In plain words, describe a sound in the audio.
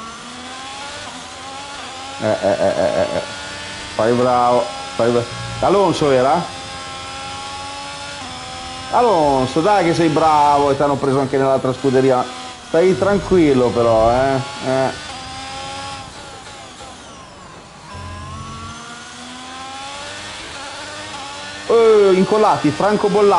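A racing car engine roars and revs up and down through the gears.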